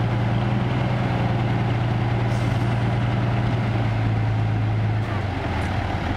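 Gravel and soil slide and pour out of a tipping truck bed.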